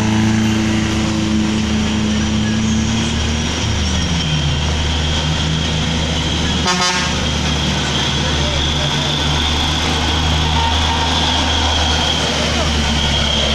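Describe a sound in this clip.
A truck engine roars and labours up the road.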